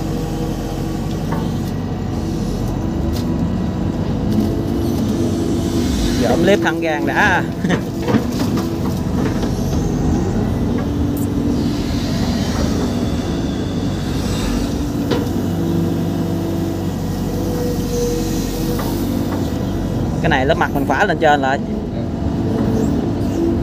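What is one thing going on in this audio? An excavator's diesel engine rumbles steadily close by.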